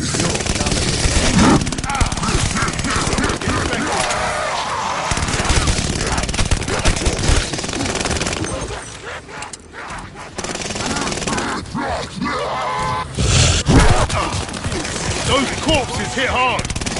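Explosions boom and roar with fire.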